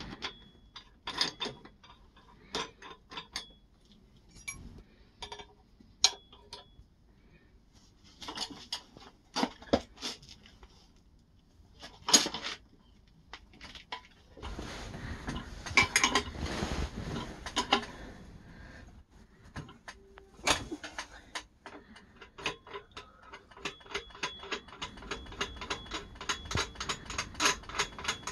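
A socket wrench clinks against metal.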